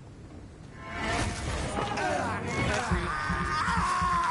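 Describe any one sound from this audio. Blows land in a scuffle with harsh clashing sounds.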